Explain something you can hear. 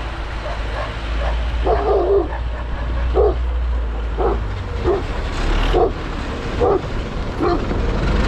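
A dog barks excitedly.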